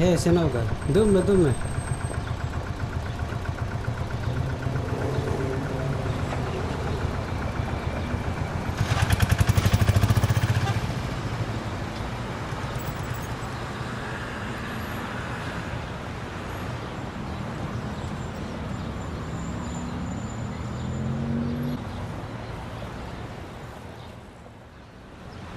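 An auto rickshaw engine rattles steadily.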